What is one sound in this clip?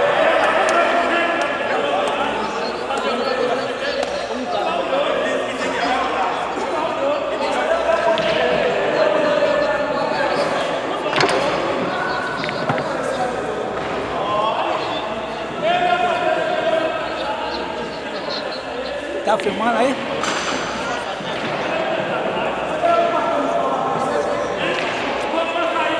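A crowd of men talk and chatter nearby in an echoing hall.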